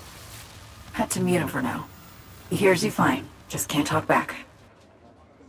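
A young woman speaks close by, calmly and softly.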